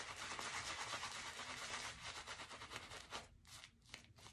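A shaving brush swishes and scrubs against a beard of lather.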